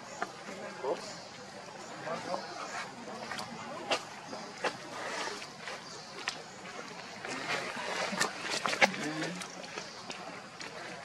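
Dry leaves rustle and crackle as a baby monkey moves about.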